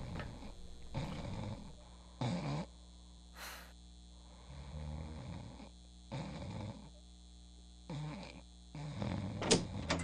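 A young man sobs quietly and breathes heavily.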